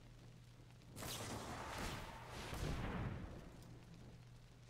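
A soft whooshing game effect swells and fades.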